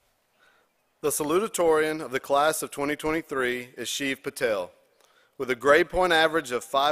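A man speaks calmly into a microphone over a loudspeaker.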